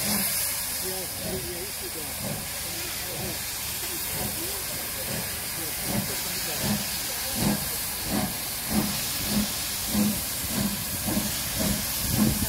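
A steam locomotive chuffs in rhythmic bursts, growing louder as it approaches.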